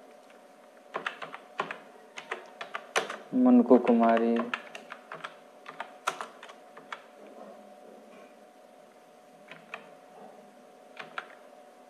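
Keys clatter on a keyboard in quick bursts.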